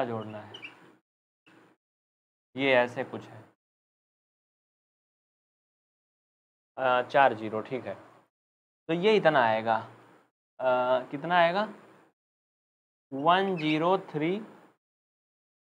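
A young man explains calmly in short phrases, close to a microphone.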